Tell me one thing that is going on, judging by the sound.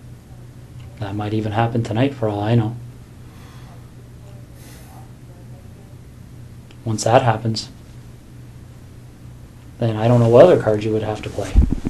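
A man speaks calmly in short bursts, heard through a room microphone.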